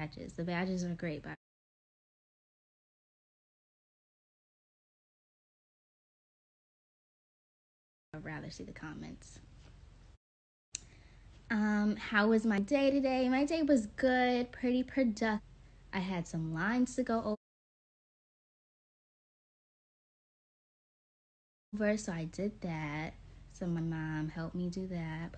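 A young woman talks casually and close to a phone's microphone, with pauses.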